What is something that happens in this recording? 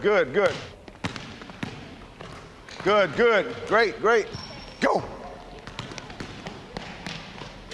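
Basketballs bounce on a wooden floor.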